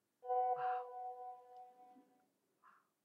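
A phone beeps with a short electronic tune.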